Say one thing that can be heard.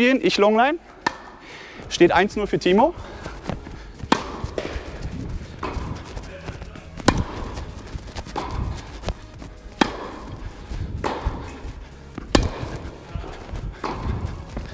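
Tennis balls are struck with rackets, with sharp pops that echo in a large hall.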